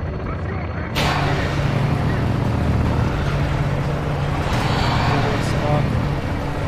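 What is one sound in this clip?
A large metal roller door rattles as it rolls open.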